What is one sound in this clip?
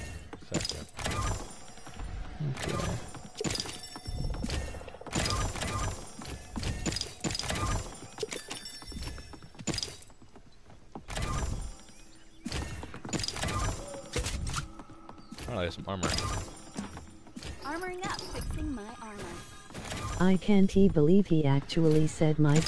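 A wooden chest opens with a bright magical chime.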